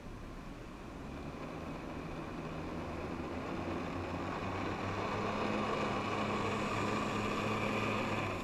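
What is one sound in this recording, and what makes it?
A water jet roars steadily and grows louder.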